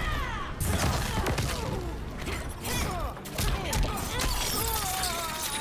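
Heavy punches and kicks thud and crack in quick succession.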